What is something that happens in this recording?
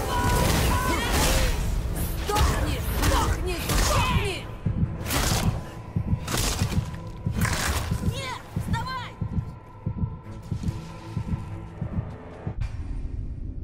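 Fiery blades whoosh and crackle with electric sparks.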